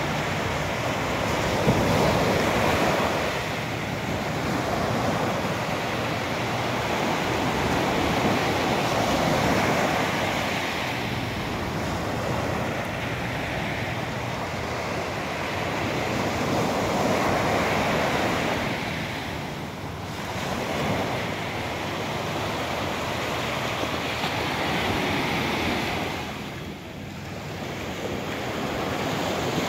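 Water washes and laps in slow, rolling surges nearby.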